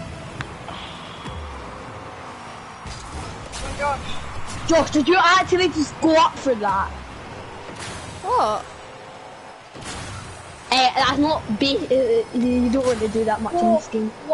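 A game car's rocket boost roars in bursts.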